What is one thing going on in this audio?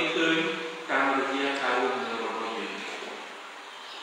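A man sings a chant through a microphone in a reverberant hall.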